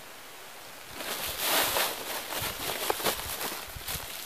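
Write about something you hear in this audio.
A plastic bag rustles and crinkles as it is shaken open.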